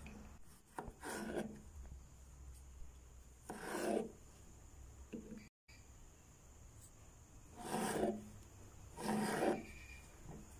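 A knife slices through a tomato and thuds on a wooden board.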